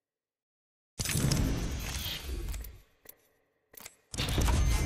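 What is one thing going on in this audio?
Supply packs drop and burst open with a loud whooshing rumble.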